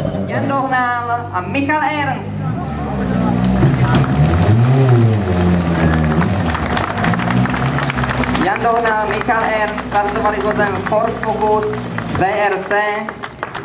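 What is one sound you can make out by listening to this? A rally car engine idles and revs loudly nearby.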